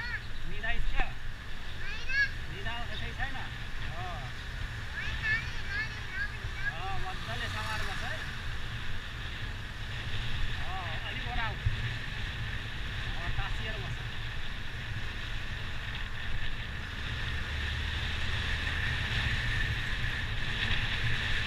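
Wind rushes past while riding.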